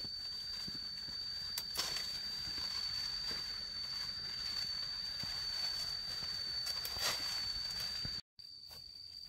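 Leafy branches rustle as they are pulled and broken off.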